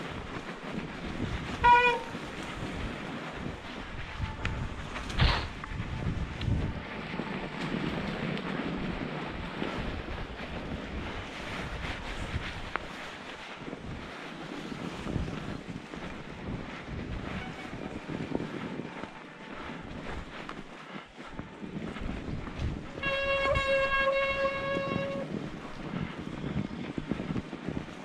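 Bicycle tyres crunch and hiss over snow.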